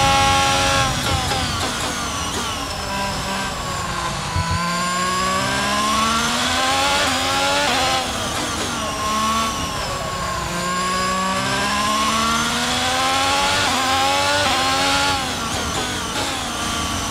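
A Formula One car's V6 turbo engine downshifts and revs up and down through slow corners.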